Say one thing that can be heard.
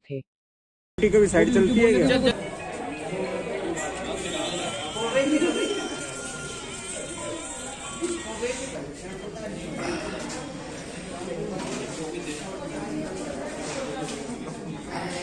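A crowd of people murmurs and chatters indoors.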